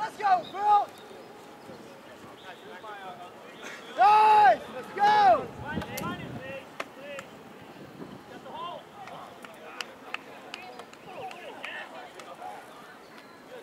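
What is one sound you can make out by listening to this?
Young players shout loudly to each other outdoors.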